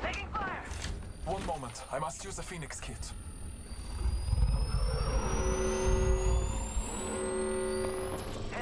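An electronic device whirs as it charges, its tone rising steadily in pitch.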